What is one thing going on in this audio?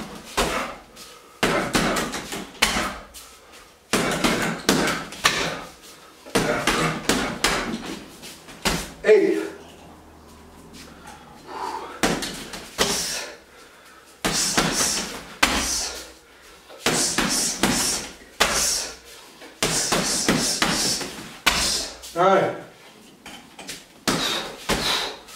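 Gloved punches and kicks thud repeatedly against a heavy punching bag.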